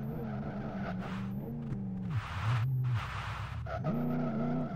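Tyres screech as a car slides through a bend.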